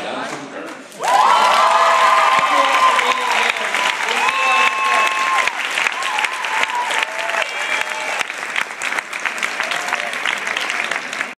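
A large crowd claps and applauds.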